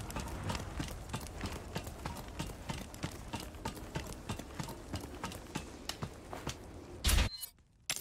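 Footsteps tread at a steady pace.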